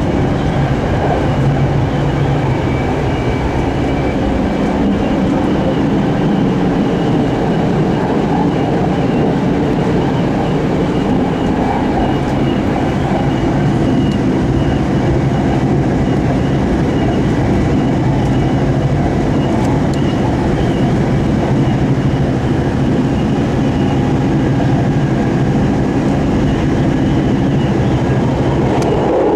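A train rumbles steadily along the tracks from inside a carriage.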